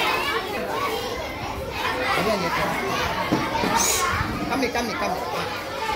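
Many children chatter and call out nearby in an echoing room.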